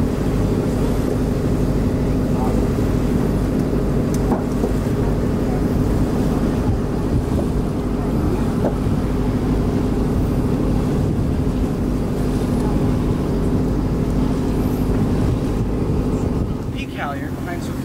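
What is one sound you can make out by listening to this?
A ship's engine hums steadily.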